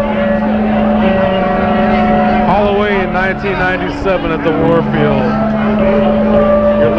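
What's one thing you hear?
A rock band plays loudly with distorted electric guitars.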